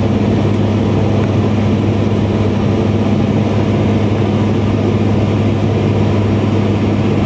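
An aircraft's engines drone steadily in the cabin.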